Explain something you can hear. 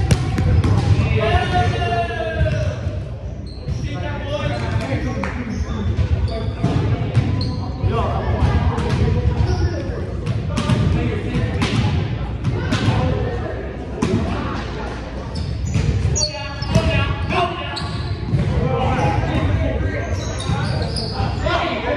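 A volleyball thuds off hands and arms.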